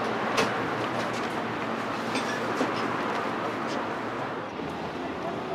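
Traffic hums on a city street.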